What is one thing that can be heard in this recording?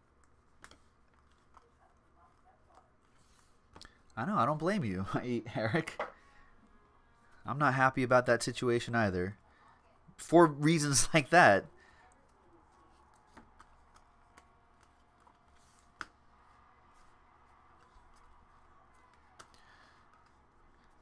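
Trading cards shuffle and slide softly against each other.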